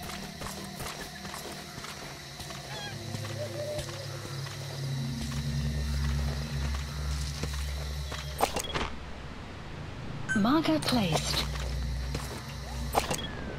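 Grass rustles as someone crawls through it.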